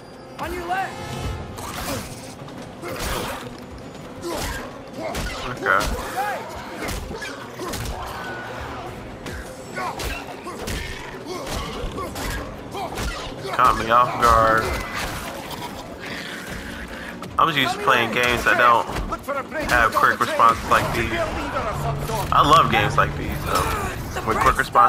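A deep-voiced man shouts urgently.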